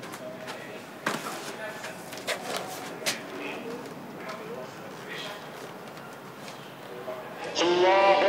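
Paper rustles and crinkles in a man's hands.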